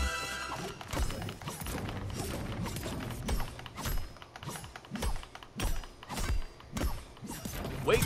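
An axe chops into wood with repeated heavy thuds.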